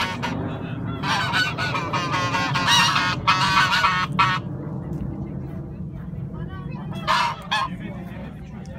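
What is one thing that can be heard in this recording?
Geese honk loudly.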